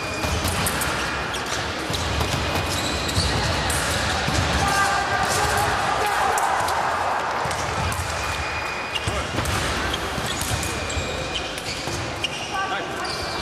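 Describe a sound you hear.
Shoes stamp and squeak on a hard floor.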